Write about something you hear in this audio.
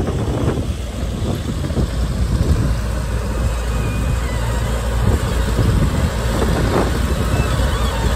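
Soil and beet tip from a bucket with a rattling rush.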